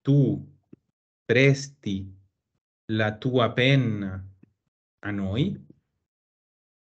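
A man speaks calmly and clearly over an online call, pausing between phrases.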